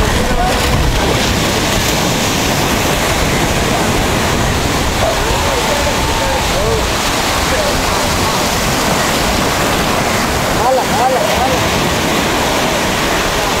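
Water splashes around men wading while hauling a net.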